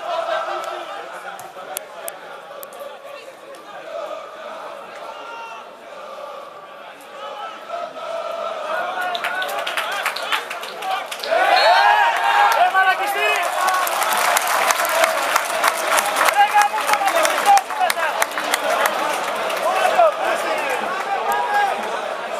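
A large stadium crowd chants and sings.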